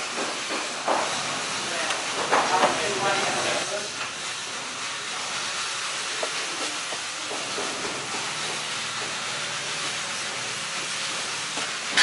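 A hand tool scrapes across a hard surface.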